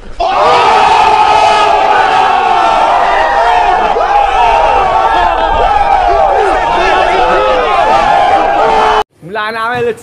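A crowd of young people shouts and cheers excitedly outdoors.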